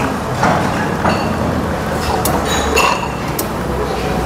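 Hot liquid trickles into cups.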